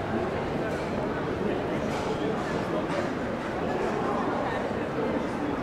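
A crowd of people chatter in a busy outdoor street.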